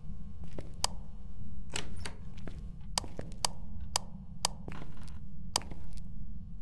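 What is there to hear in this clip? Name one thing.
A flashlight switch clicks on and off repeatedly.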